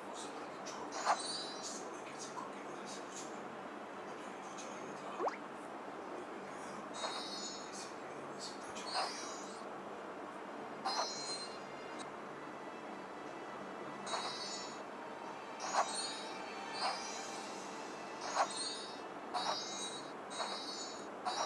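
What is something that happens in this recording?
Short sparkly chimes ring out again and again.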